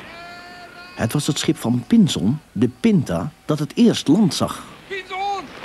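A man speaks with strong emotion.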